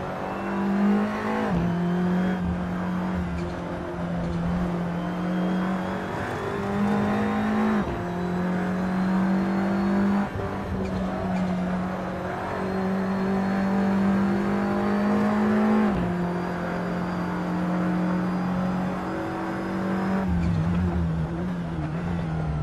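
A racing car engine roars steadily, with pitch jumps as the gears shift.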